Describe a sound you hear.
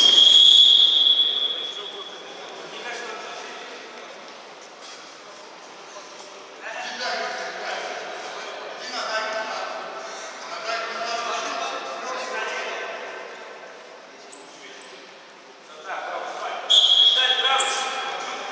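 A referee's whistle blows sharply in an echoing hall.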